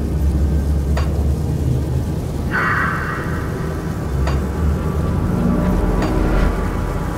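Magic spell effects chime and shimmer.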